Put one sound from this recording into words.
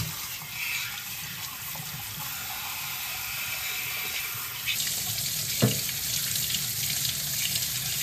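Hands scrub tools under running water.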